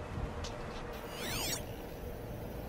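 An electronic scanner sweeps with quick rising and falling tones.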